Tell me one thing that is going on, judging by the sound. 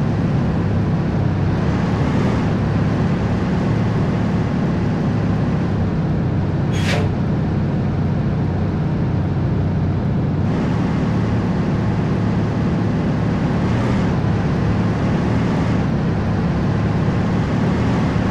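A truck engine rumbles steadily as it drives.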